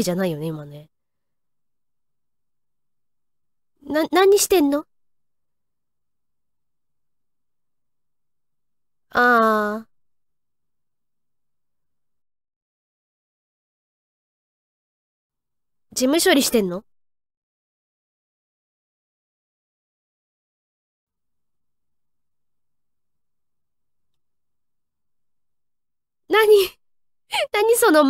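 A young woman speaks in short, animated bursts through a microphone, with long silences between.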